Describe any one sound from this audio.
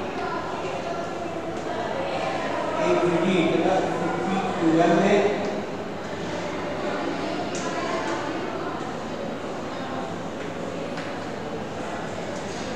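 A middle-aged man speaks calmly through a clip-on microphone.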